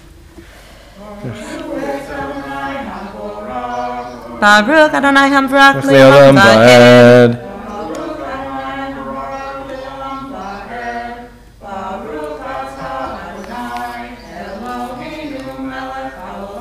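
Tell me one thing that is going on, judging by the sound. A man chants in a sustained singing voice through a microphone.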